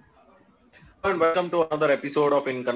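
A man speaks clearly and evenly through a microphone on an online call.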